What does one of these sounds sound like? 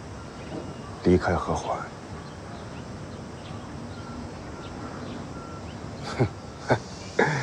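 A young man answers in short, soft phrases up close.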